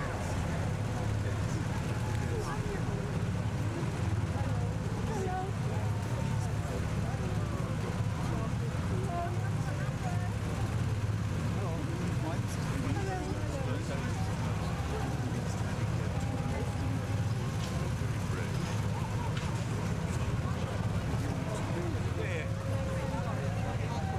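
A crowd chatters and murmurs nearby.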